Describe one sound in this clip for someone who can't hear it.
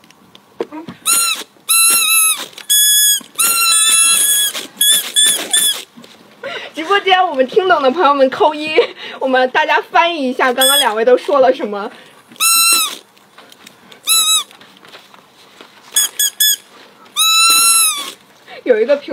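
Toy whistles blow shrill, warbling tones in short bursts.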